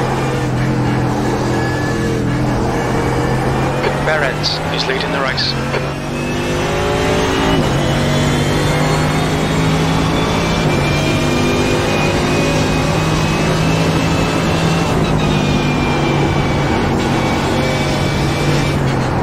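A racing car engine roars loudly, revving up and dropping briefly with each gear change.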